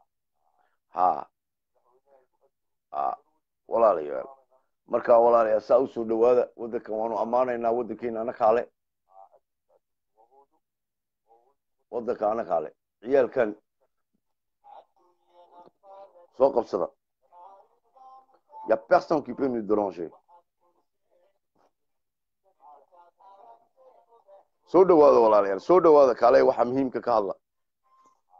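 A middle-aged man speaks calmly and close to a phone microphone, in bursts with pauses.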